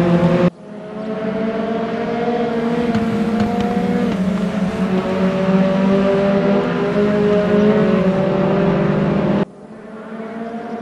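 A racing car engine roars at high revs close by.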